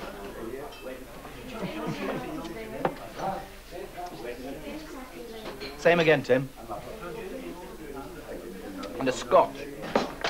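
An elderly man talks quietly.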